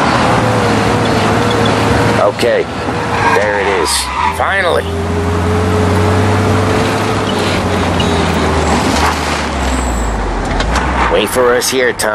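A car engine hums steadily as the car drives along a road, then falls quiet as the car stops.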